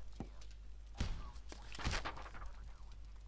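A paper map rustles as it unfolds.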